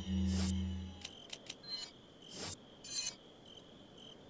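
Game menu sounds click and chime as selections change.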